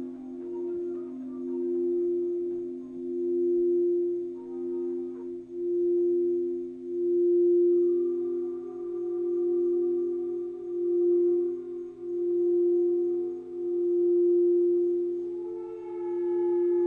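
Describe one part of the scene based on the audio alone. A singing bowl rings with a steady hum that swells and fades in slow waves.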